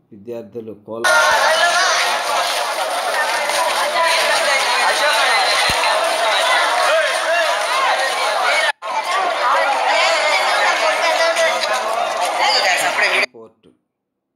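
A large outdoor crowd chatters and murmurs loudly.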